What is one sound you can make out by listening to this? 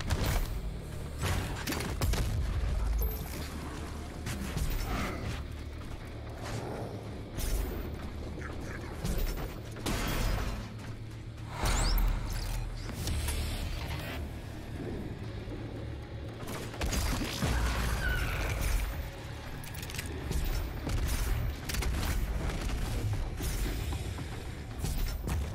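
Game gunfire bangs in short bursts.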